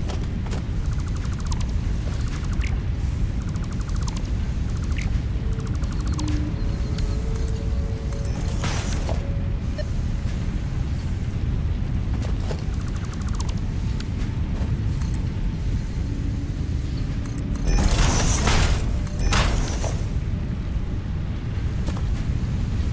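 A machine hums low and steadily.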